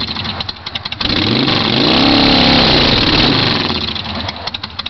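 A motorcycle engine revs up loudly and falls back.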